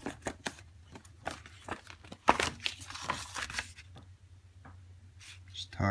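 Paper pages rustle as a booklet is handled and leafed through.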